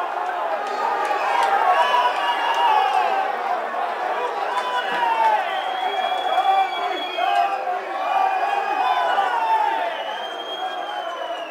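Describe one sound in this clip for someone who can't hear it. Fans whistle shrilly from the stands.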